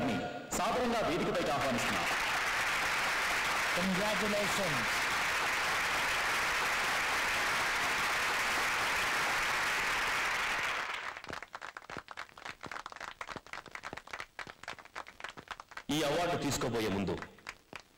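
A man speaks through a microphone and loudspeakers in a large hall.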